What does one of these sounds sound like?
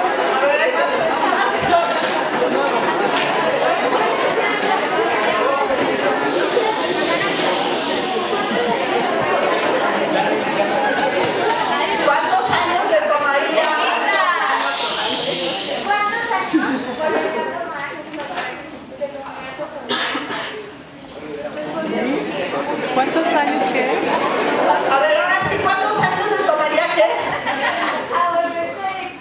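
A large crowd of children chatters in an echoing hall.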